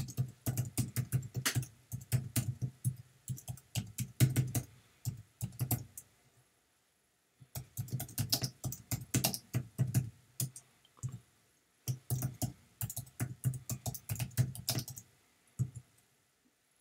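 Keyboard keys clack in quick bursts of typing.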